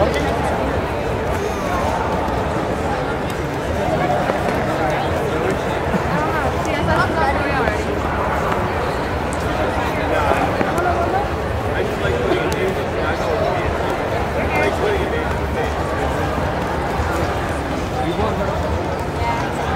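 A crowd chatters throughout a large echoing hall.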